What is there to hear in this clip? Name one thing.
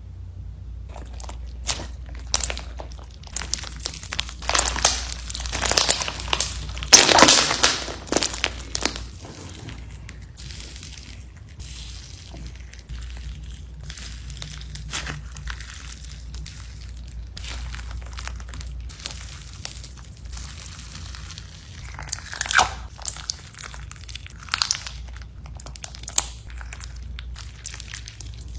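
Slime crunches and crackles as hands squeeze it.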